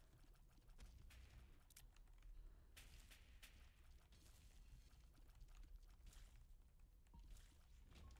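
A game creature bursts with a wet splat.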